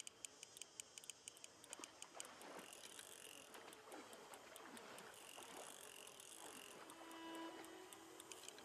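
A fishing reel ticks rapidly.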